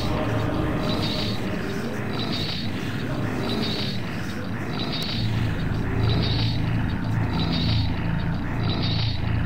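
Flying swords whoosh through the air again and again.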